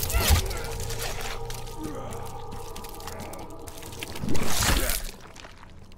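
Flesh tears with a wet, heavy squelch.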